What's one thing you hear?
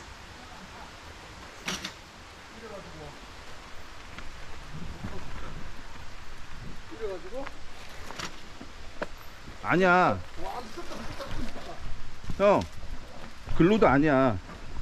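Bicycle wheels rattle over stones.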